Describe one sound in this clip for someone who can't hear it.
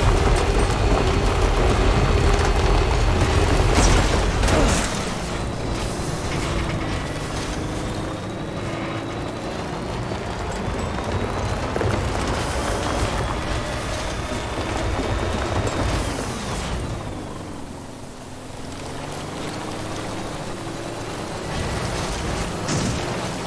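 Tyres crunch over rocks and gravel.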